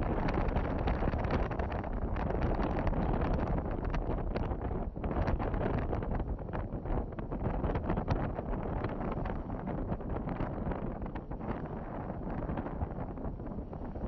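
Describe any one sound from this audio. A car drives steadily along a road with a low, rough rumble.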